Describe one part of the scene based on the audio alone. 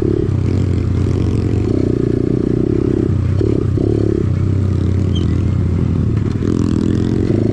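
A dirt bike engine revs loudly up close, rising and falling.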